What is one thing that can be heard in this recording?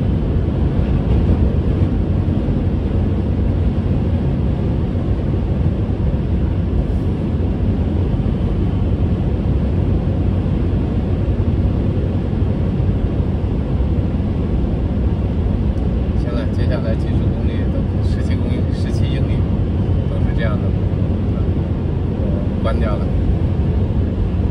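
A car's engine and tyres rumble steadily on a highway, heard from inside the car.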